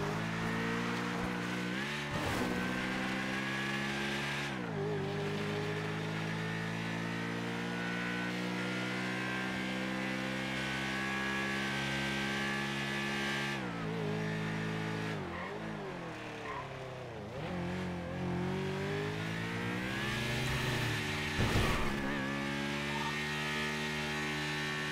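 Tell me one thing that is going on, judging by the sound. A motorcycle engine roars steadily, rising in pitch as it speeds up and dropping when it shifts gear or slows.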